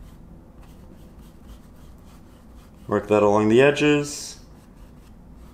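A brush strokes softly across canvas.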